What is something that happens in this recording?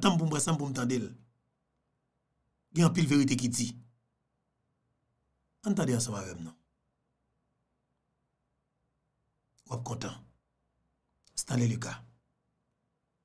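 A man speaks close to a microphone in short, calm bursts with pauses between them.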